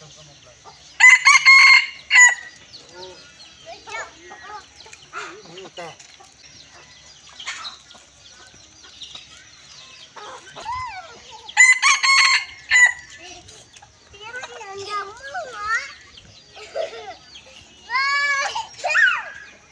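A rooster crows loudly nearby, again and again.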